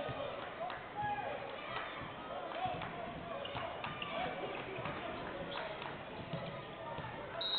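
A basketball bounces on a hard court with sharp thuds.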